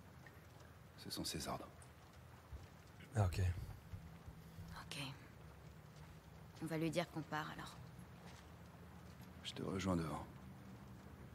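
A young man speaks calmly.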